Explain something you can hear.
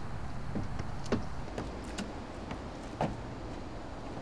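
Footsteps thud up wooden steps.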